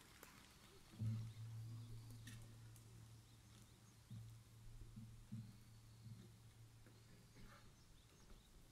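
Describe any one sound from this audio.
A saxophone group plays a slow tune outdoors.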